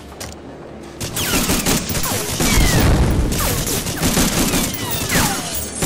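A rifle fires repeated loud shots.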